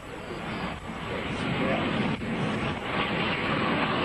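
A jet airliner roars as it lands.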